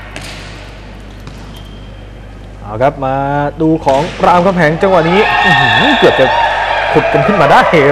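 Hands strike a volleyball during a rally.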